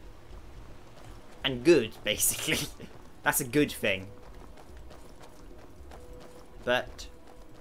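Footsteps run over stone paving.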